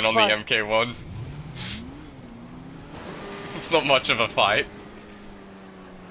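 A motorcycle engine hums and revs.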